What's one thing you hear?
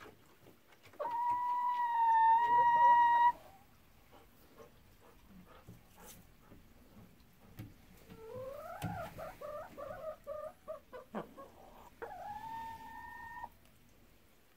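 A hen calls with drawn-out, squawking cries close by.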